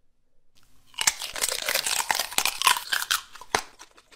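A young man chews noisily with his mouth open.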